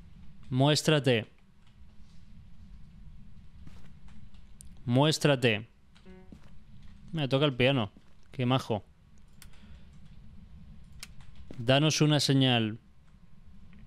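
A young man speaks in short bursts close to a microphone, with animation.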